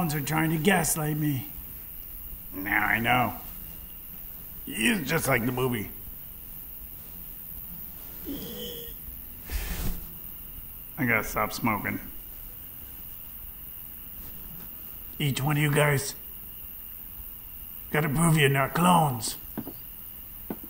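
A middle-aged man speaks nearby in short, deliberate phrases with long pauses.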